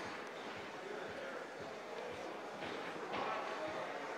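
People chatter in the background of a large indoor hall.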